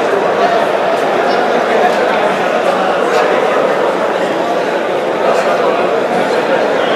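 A large crowd of men talks all at once in an echoing hall.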